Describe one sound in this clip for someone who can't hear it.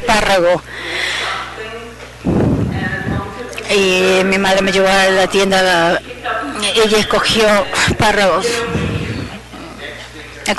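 A woman speaks through a microphone in a large hall.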